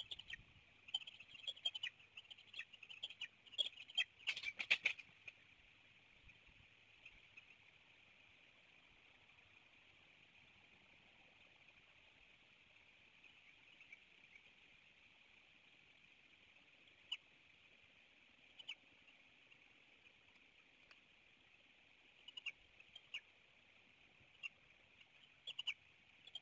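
Eagles give short, high chirping calls in quick bursts.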